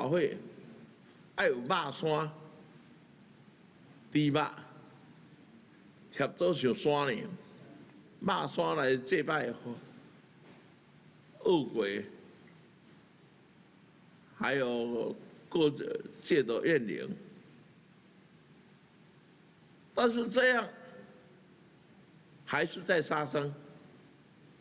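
An elderly man speaks into a microphone with animation, in short bursts with pauses.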